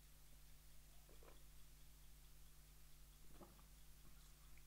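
A man slurps a hot drink close to a microphone.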